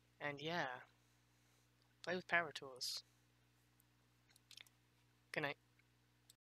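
A woman speaks in short phrases close to a microphone.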